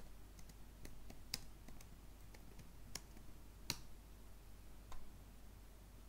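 Keys on a computer keyboard click as someone types.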